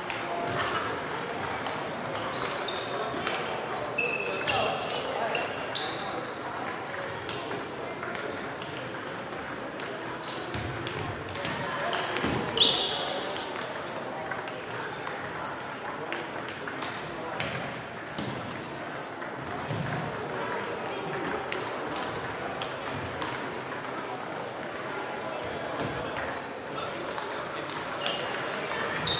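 Table tennis balls click on tables and paddles throughout a large echoing hall.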